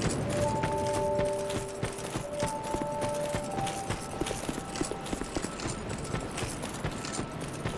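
Armoured footsteps crunch steadily on dry ground.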